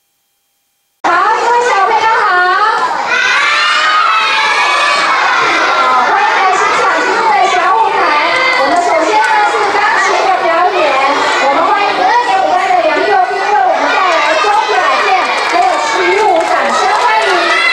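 A woman speaks animatedly into a microphone through loudspeakers in an echoing hall.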